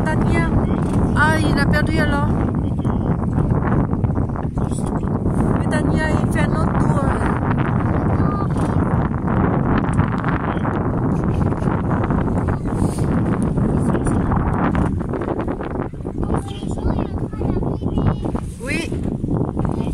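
Choppy waves slap and splash against a boat's hull.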